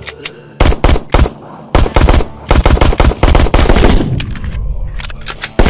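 A pistol fires in rapid bursts of loud shots.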